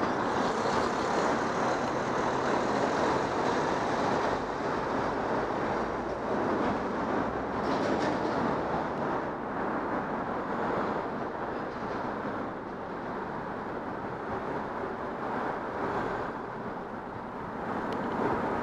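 A car engine idles nearby in traffic.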